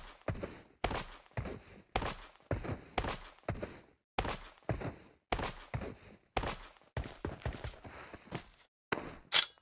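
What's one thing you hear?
A rifle fires single shots at a steady pace, each shot ringing out briefly.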